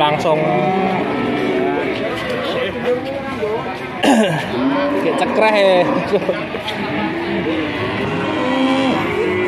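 A crowd of men and women talks and calls out nearby outdoors.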